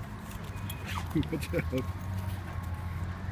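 A dog yelps sharply a few times.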